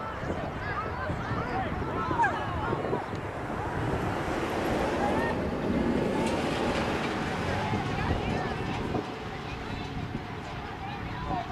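Wind rumbles across the field.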